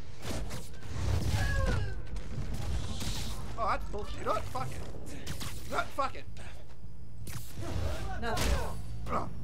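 Air whooshes past in quick swinging rushes.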